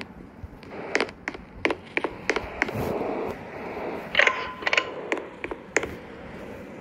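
Footsteps patter on the ground.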